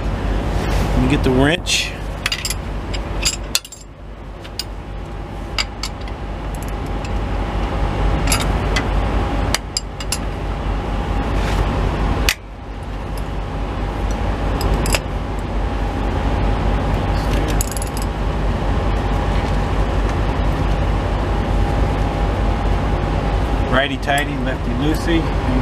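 Metal tools click and clink against engine parts.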